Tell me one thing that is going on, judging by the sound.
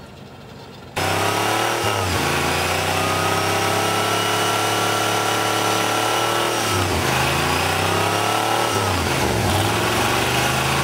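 A truck engine roars and revs loudly.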